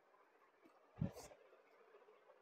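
Cloth thumps softly onto a table.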